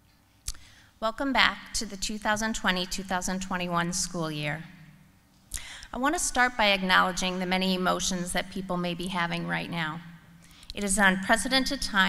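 A middle-aged woman speaks calmly into a microphone over a loudspeaker in a large echoing hall.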